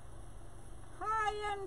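A woman close by makes a short, rising vocal sound.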